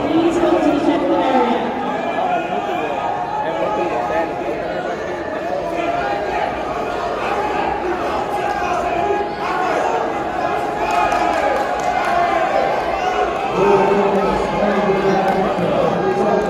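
A crowd of spectators chatters and calls out loudly in a large echoing hall.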